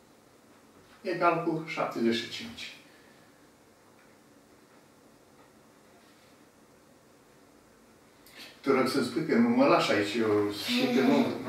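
An elderly man speaks calmly and clearly, close by.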